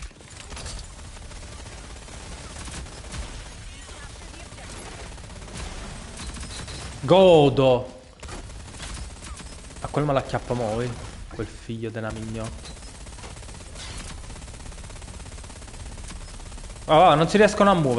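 Rapid gunfire crackles from a game.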